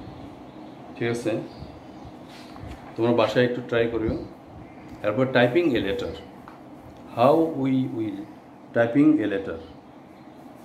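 A middle-aged man speaks calmly and close by, in short phrases.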